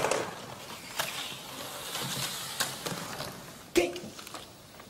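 A metal case clicks and clatters as it is handled.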